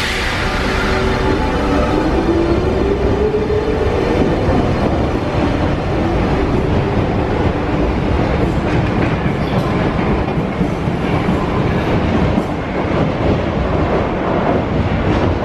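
A metro train rumbles loudly along the tracks in an echoing underground station.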